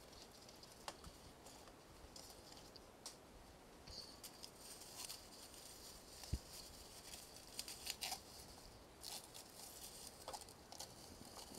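Paper and masking tape rustle and crinkle close by.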